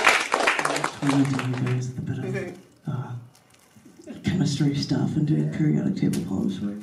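A woman speaks cheerfully into a microphone to an audience.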